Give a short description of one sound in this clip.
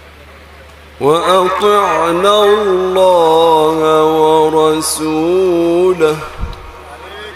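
A young man chants a long, wavering melody through a loudspeaker.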